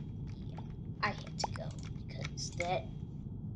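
A young boy speaks close to a microphone.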